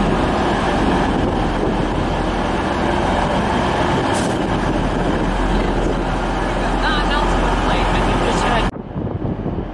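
A train rumbles loudly past under an echoing roof.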